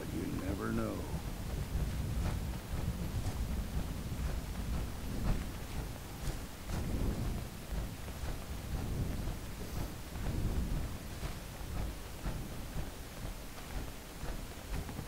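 Heavy metallic footsteps thud steadily on soft ground.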